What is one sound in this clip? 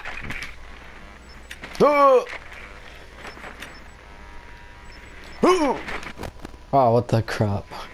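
Electronic static crackles and buzzes.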